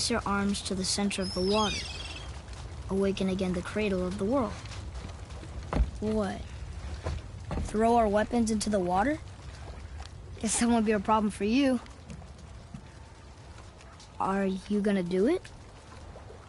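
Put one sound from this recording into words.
A young boy speaks with animation, close by.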